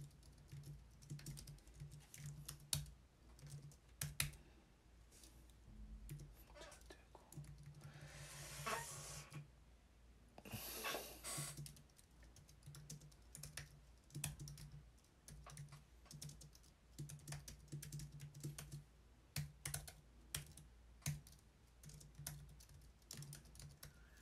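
Keys click on a computer keyboard in quick bursts.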